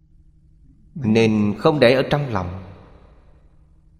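An elderly man speaks calmly and warmly into a microphone, close by.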